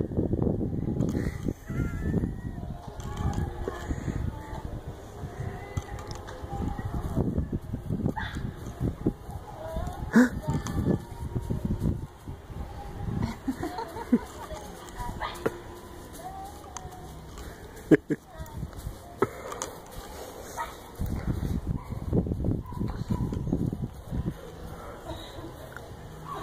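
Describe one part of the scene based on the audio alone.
A toddler babbles and squeals.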